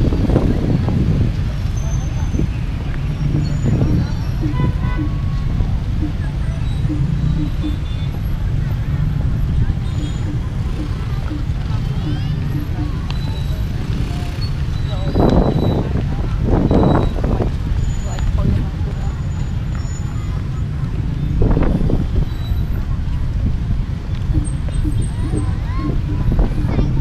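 Wind rumbles and buffets outdoors.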